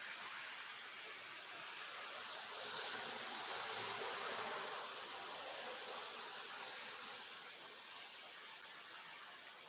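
Wind blows steadily outdoors, swelling for a moment and then easing off.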